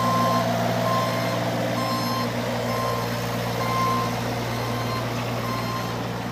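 A mini excavator's warning alarm beeps at a steady pace.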